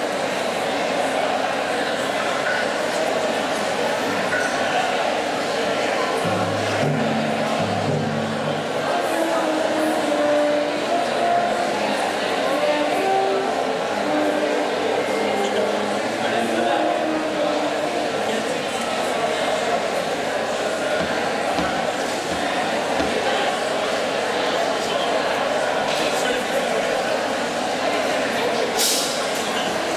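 A large audience murmurs and chatters in an echoing hall.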